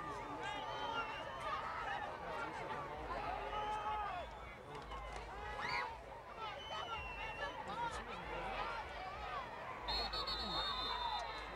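Many young men on the sideline shout and call out with excitement.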